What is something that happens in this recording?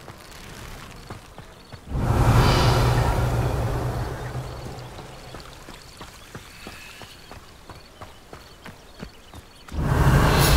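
Footsteps patter quickly on stone paving.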